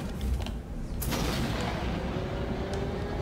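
A heavy sliding door hisses open.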